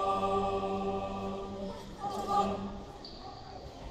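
A choir sings a held chord in a large echoing hall.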